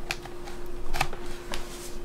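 A computer mouse clicks.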